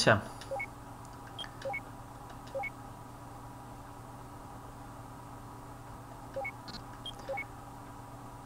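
Short electronic menu beeps sound now and then.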